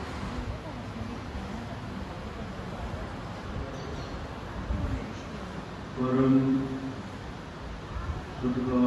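A man's voice comes through a microphone in a large hall.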